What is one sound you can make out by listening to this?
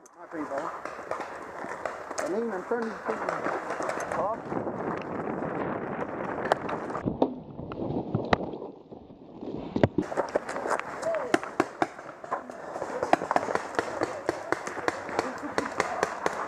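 Paintball markers pop in quick bursts nearby.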